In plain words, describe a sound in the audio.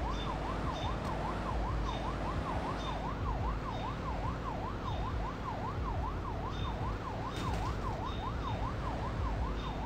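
A siren wails rapidly up and down close by.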